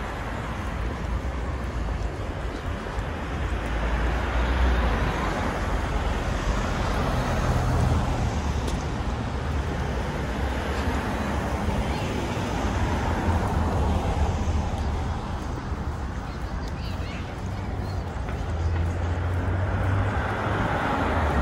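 Cars drive past on a road, their tyres hissing as they come and go.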